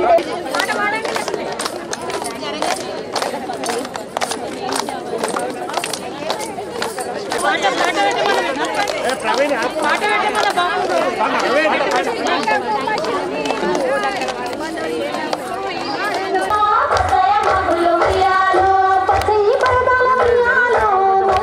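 A group of women clap their hands in rhythm.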